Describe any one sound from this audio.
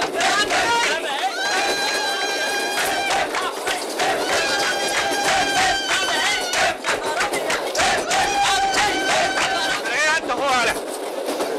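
A group of men sing loudly together.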